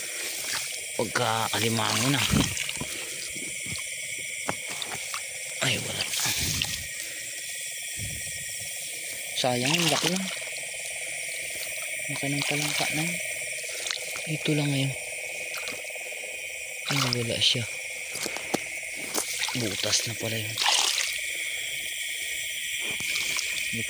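Boots splash and slosh through shallow water.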